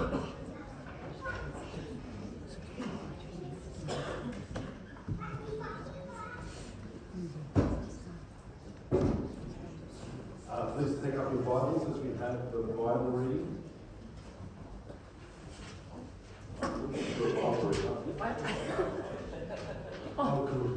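Men and women chatter in a large echoing hall.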